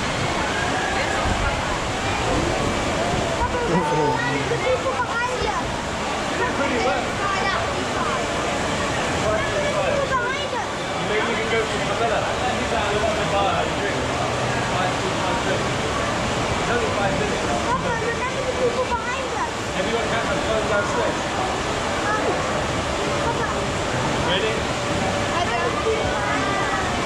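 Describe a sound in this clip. Several people talk and laugh close by.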